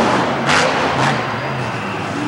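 A monster truck lands with heavy thuds.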